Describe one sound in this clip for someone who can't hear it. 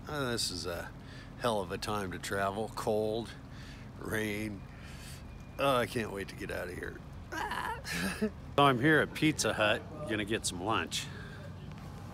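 A middle-aged man talks cheerfully and close up.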